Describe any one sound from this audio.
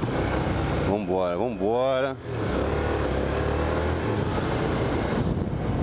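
A motorcycle engine revs up and down as it rides.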